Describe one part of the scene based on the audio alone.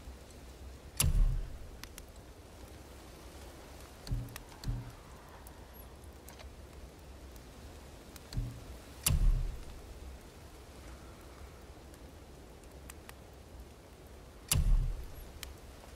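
Soft game menu thuds and clicks sound a few times.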